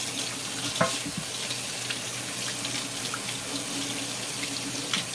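Water runs steadily from a tap into a metal sink.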